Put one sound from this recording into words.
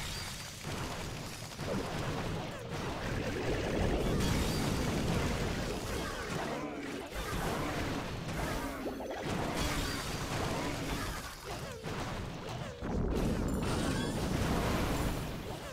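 Electric blasts crackle and buzz as buildings are attacked.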